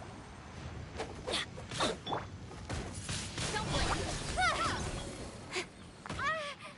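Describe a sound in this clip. Sharp magic strikes crack and whoosh.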